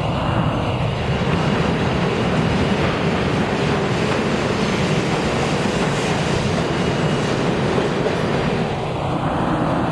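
A subway train pulls in along the near platform, rumbling and squealing.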